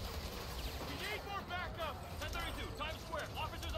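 A man speaks urgently into a radio close by.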